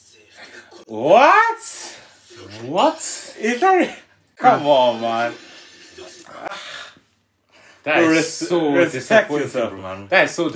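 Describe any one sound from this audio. Young men laugh loudly together.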